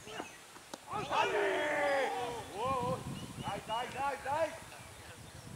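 Young men shout loudly in appeal.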